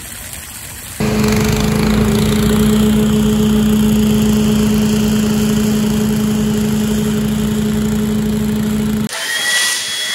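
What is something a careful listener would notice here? Leaf blower engines drone loudly and steadily.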